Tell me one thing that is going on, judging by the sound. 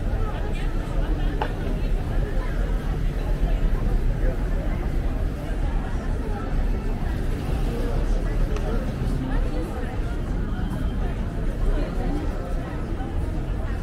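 Cars hum past on a nearby street.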